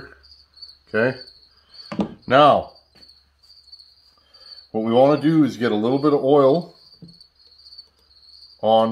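A man talks calmly and close by, explaining.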